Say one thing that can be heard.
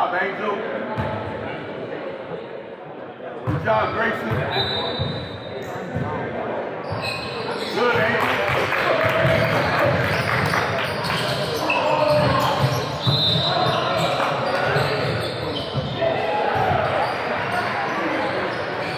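A crowd of adults and teenagers chatters and calls out in a large echoing hall.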